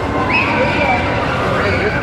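Riders on a roller coaster scream.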